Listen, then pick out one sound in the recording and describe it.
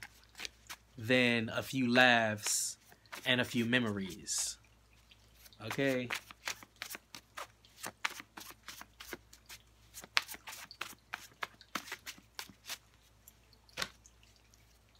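Playing cards are shuffled with quick, soft clicks and taps.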